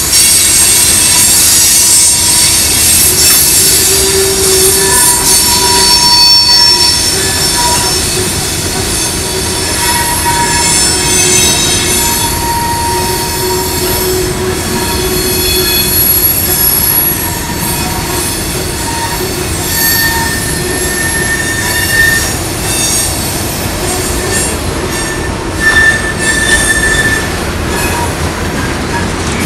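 A long freight train rolls past close by, its wheels rumbling and clattering on the rails.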